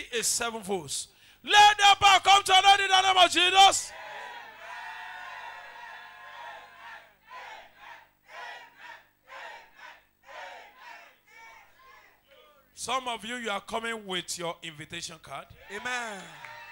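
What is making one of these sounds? A man shouts with fervour through a microphone.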